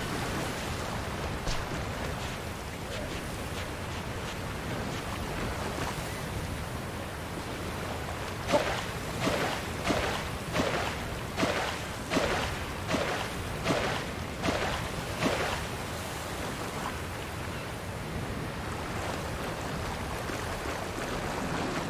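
Water splashes as a game character wades through it.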